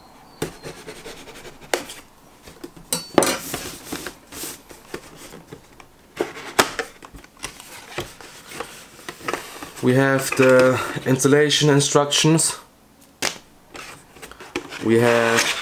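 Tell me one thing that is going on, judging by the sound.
Cardboard packaging rustles and scrapes as it is opened.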